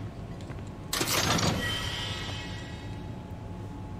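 A treasure chest creaks open with a sparkling chime.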